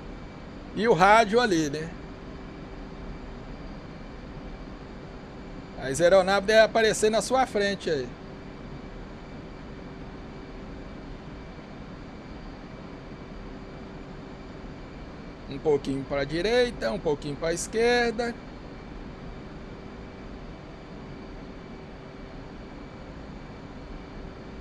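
A twin-jet fighter's engines hum steadily, heard from the cockpit.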